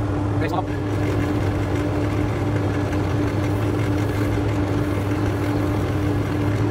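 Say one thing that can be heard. Fine abrasive rasps against a spinning wooden piece.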